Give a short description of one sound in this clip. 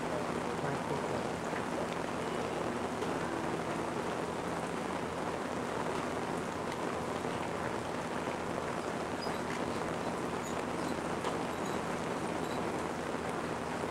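An elderly man speaks calmly and steadily through a microphone and loudspeakers.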